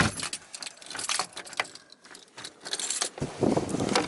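Keys rattle in a door lock.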